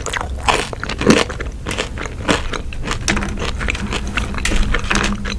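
A young woman chews food wetly and loudly close to a microphone.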